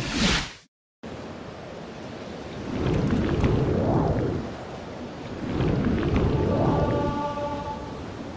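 Water surges and swirls with slow swimming strokes.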